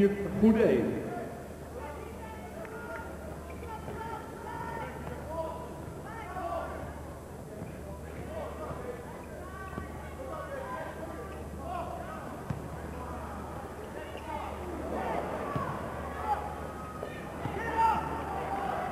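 A crowd murmurs steadily in the background.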